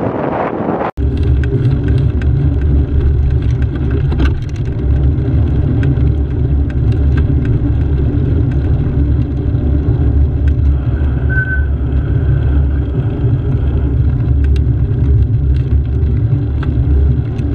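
A motorcycle engine hums steadily at cruising speed.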